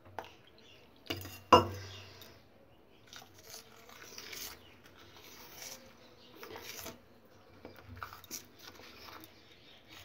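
A metal spoon clinks and scrapes against a metal bowl.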